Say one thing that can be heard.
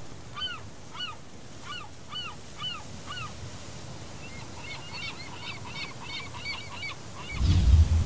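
Seagulls cry overhead in repeated short calls.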